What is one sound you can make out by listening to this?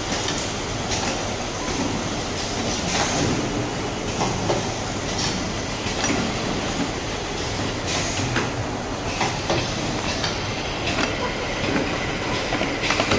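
Plastic bottles clatter and knock against each other.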